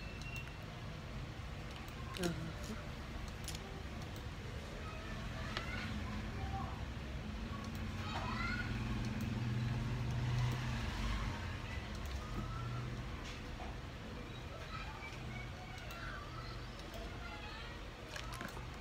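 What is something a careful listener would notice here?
Small plastic bricks click as they are pressed together.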